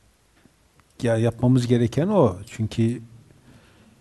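A middle-aged man speaks with emphasis into a close headset microphone.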